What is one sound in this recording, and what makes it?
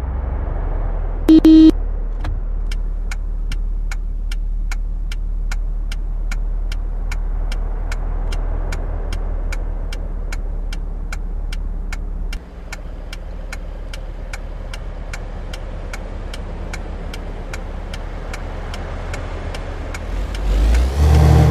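A van engine hums steadily.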